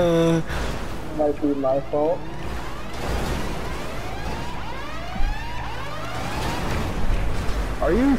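Car engines rev and roar, rising in pitch again and again.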